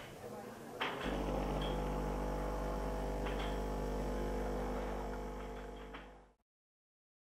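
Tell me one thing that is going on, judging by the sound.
A coffee machine whirs and pumps steadily as it brews.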